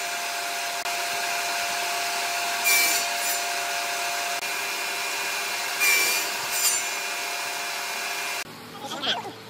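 A table saw whines steadily.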